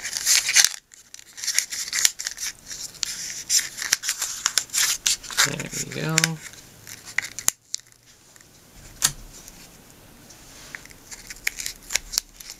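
Paper crinkles and rustles between fingers.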